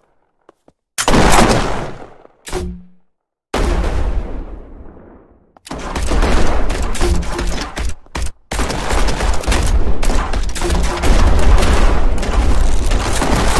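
Explosions boom loudly with rumbling roars.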